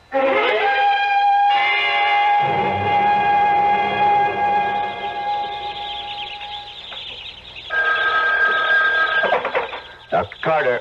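An old radio plays music through a small, tinny speaker.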